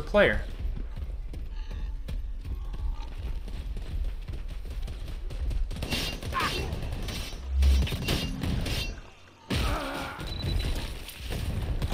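Heavy footsteps run over dirt and mud.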